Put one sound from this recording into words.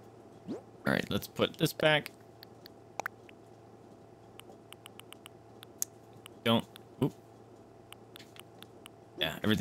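Short game menu blips tick as items are scrolled.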